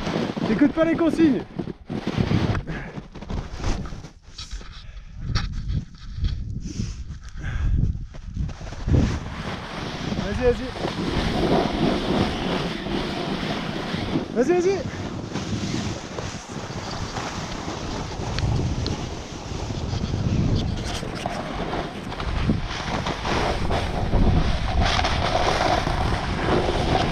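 Wind rushes past the microphone.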